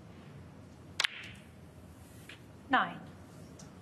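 A cue tip strikes a ball with a sharp click.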